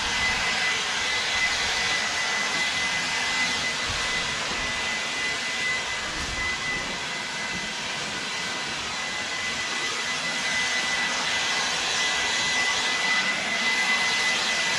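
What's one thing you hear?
A small handheld power tool whirs steadily with a high whine.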